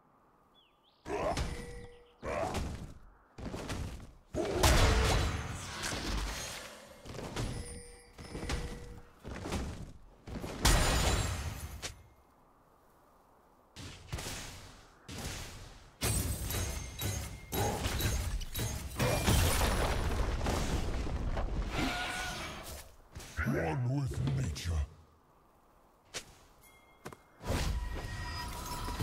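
Fantasy battle sound effects whoosh and clash in short bursts.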